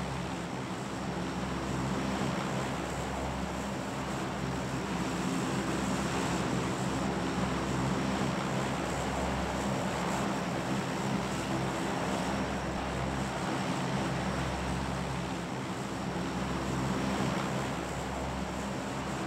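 A plane's propeller engines drone steadily from inside the cabin.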